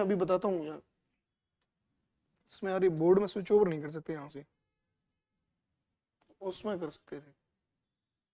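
A young man lectures calmly into a close microphone, in short bursts with pauses.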